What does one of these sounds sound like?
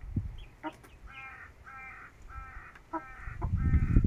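A chicken clucks softly in short bursts.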